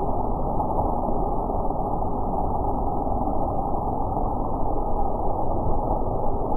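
Skateboard wheels grind along a concrete ledge.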